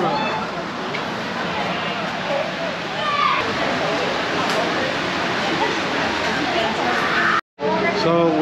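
A crowd murmurs outdoors in the open air.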